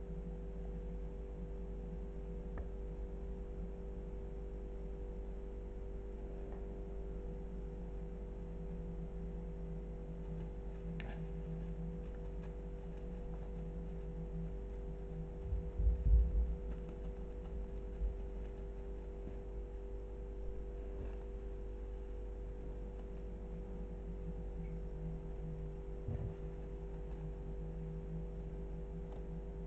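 Plastic ribbon rustles softly as a kitten bats at it.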